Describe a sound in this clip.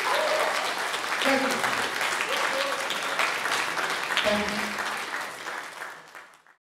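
An audience applauds loudly in an echoing hall, then the clapping fades away.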